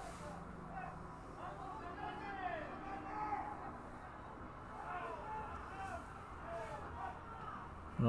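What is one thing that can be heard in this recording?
Young men call out to each other faintly across an open field.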